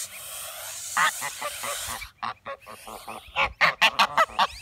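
Geese honk loudly in short repeated calls close by.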